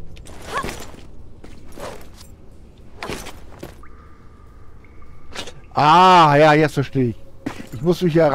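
Hands grab metal bars with soft knocks.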